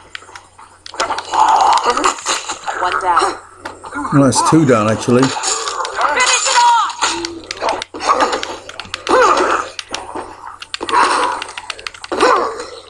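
Men grunt and growl while fighting.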